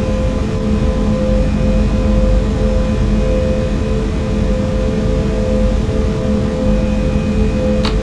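A train's electric motor hums steadily as it rolls along the track.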